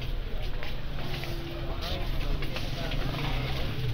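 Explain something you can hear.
Two men talk face to face.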